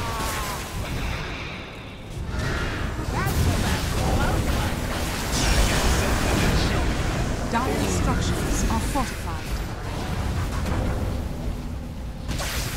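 Magic spells blast and crackle in a noisy fantasy battle.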